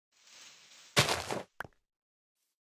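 Dirt blocks crunch as they break.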